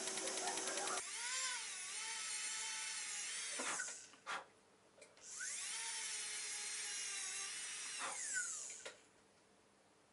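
A small handheld grinder whines while polishing.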